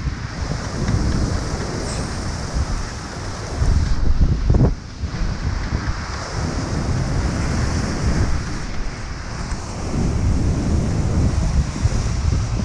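Strong wind blusters across the microphone outdoors.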